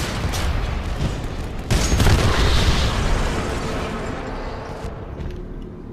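A heavy machine gun fires.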